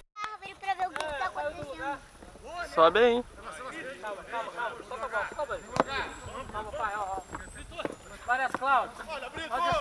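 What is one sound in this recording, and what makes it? Young men shout across an open field during a game.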